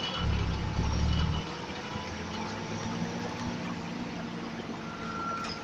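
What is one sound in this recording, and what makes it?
A bus engine hums steadily while the bus drives.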